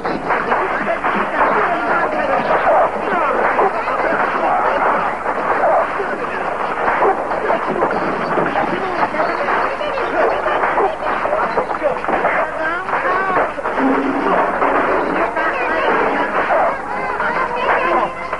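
Men shout and grunt close by.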